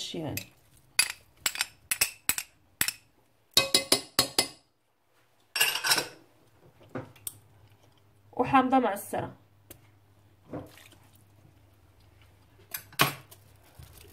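A wooden spoon knocks and scrapes against a metal pot.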